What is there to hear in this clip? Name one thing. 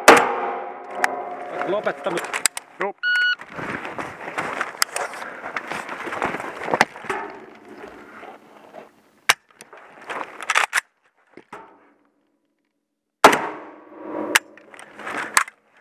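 A rifle fires sharp shots outdoors, echoing off trees.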